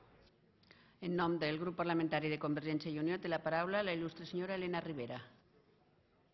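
An elderly woman speaks calmly into a microphone in a large echoing hall.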